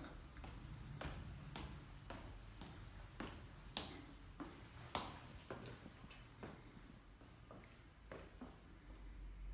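Footsteps tap down hard stairs.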